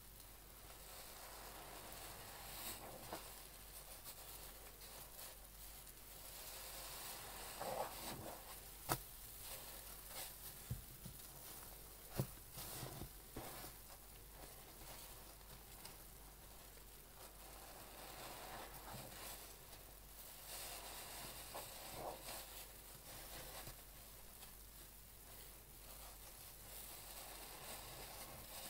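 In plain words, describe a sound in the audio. A soapy sponge squishes and squelches as gloved hands squeeze it.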